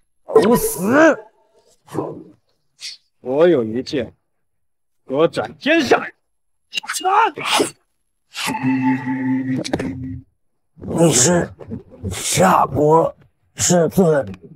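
A middle-aged man speaks sharply and menacingly.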